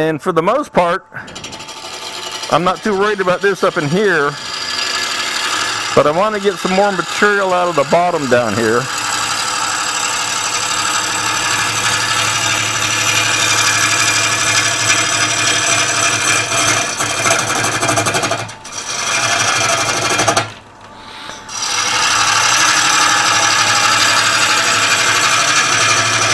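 A wood lathe hums steadily.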